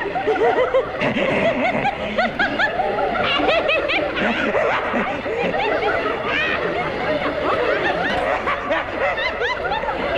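A man laughs menacingly.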